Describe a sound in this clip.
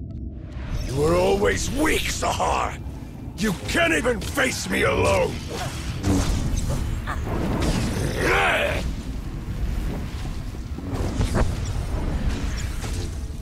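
Energy blasts burst with loud whooshes.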